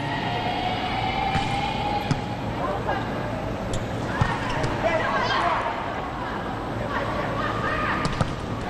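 A volleyball is struck by players during a rally.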